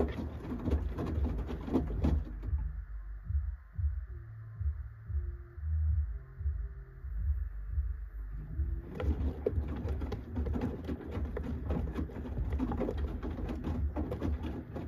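A washing machine drum tumbles laundry with a low rumble.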